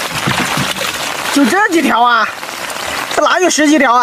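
Water splashes from a bucket into a boat.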